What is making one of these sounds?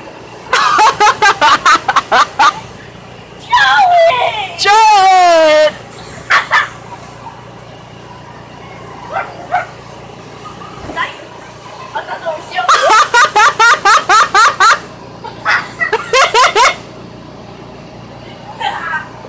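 Children laugh and shriek loudly close by.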